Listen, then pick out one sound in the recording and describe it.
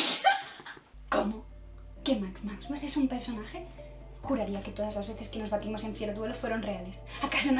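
A young woman speaks steadily, close up.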